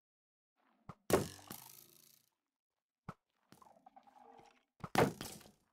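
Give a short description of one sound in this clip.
A sword swishes and strikes.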